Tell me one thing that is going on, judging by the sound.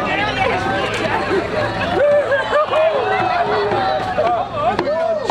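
A crowd of people chatters and calls out outdoors.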